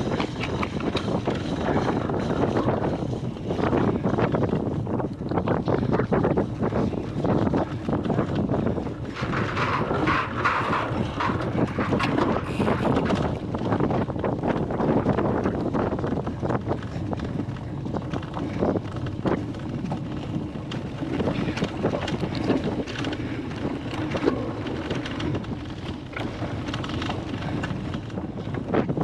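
A bicycle chain and frame rattle over bumps.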